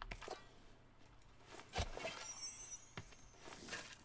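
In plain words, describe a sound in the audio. A shovel digs into soil with soft thuds.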